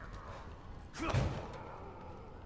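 A door bangs open.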